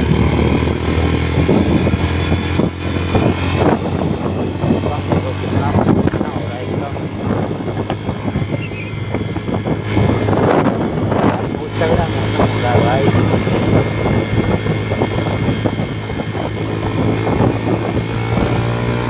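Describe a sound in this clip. Wind rushes and buffets loudly past the rider.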